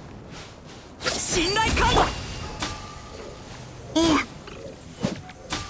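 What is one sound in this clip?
A magical burst whooshes and sparkles loudly.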